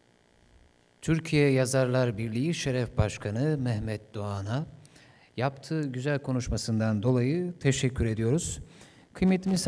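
A young man speaks steadily into a microphone.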